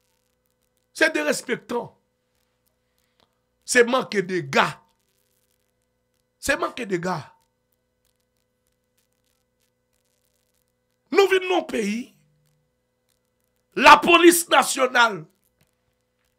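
A man speaks with animation into a close microphone, in short bursts with pauses.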